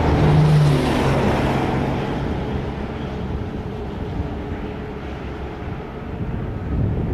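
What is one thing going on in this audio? Many cattle low and bellow in the distance.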